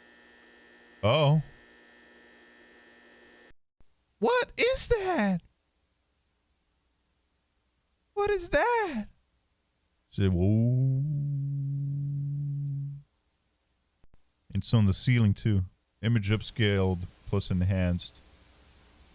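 A young man talks close to a microphone, in short bursts.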